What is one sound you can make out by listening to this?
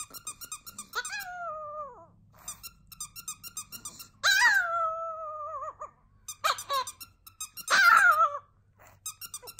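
A small dog howls in long, rising and falling wails.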